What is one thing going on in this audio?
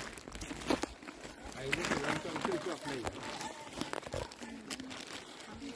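A man scrapes and digs into the soil with a small tool.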